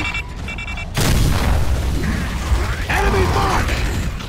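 An explosion booms and debris crackles.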